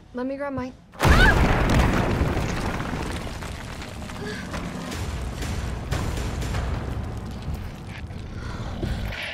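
An explosion booms and roars, then rumbles away.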